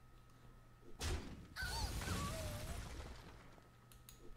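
A game's sound effects whoosh and chime.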